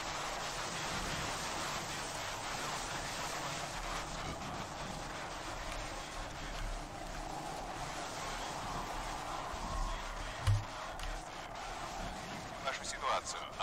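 Radio static hisses steadily.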